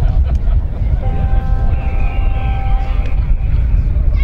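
A referee's whistle blows one long, steady note.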